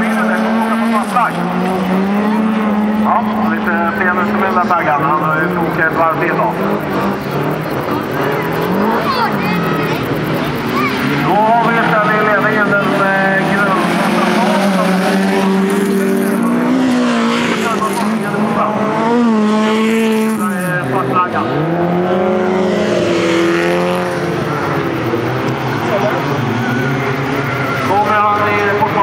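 Race car engines roar and rev loudly, rising and falling in pitch.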